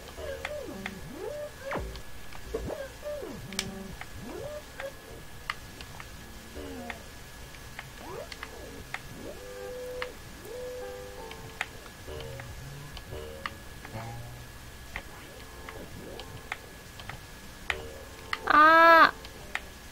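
Bouncy electronic game music plays throughout.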